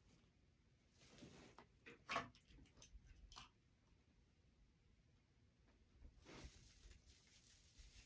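Artificial flowers and leaves rustle and crackle as they are handled.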